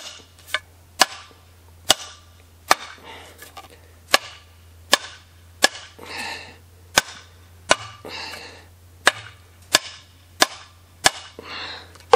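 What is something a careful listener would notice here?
A hammer strikes metal again and again with sharp ringing knocks.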